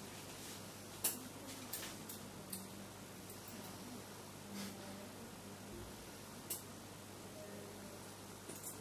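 Metal instruments clink and tap now and then.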